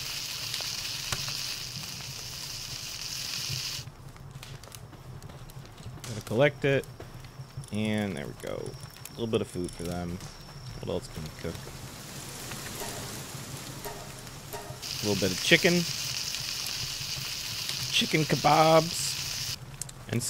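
A campfire crackles steadily.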